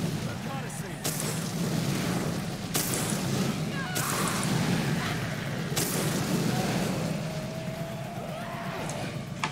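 Flames crackle and roar.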